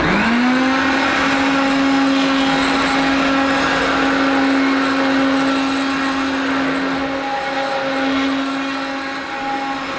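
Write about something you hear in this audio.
Vacuum cleaner brushes rumble over carpet as it is pushed back and forth.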